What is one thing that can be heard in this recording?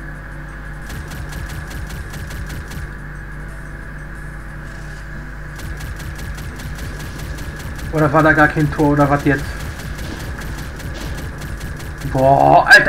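An energy pistol fires rapid zapping shots.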